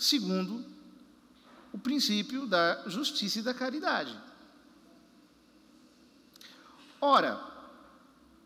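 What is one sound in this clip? A man speaks calmly into a microphone, echoing in a large hall.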